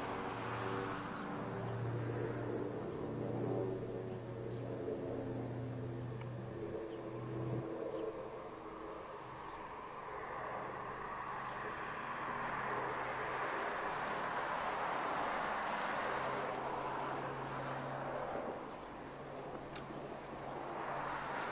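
The radial piston engines of a four-engined propeller airliner drone as it flies low overhead.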